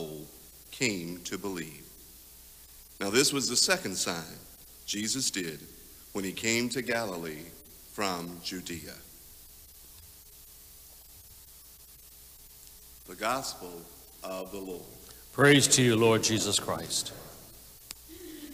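A man speaks calmly into a microphone in a large echoing room.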